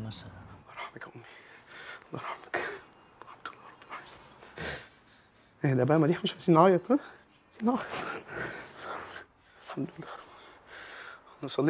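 A heavy-set man talks and sniffles emotionally.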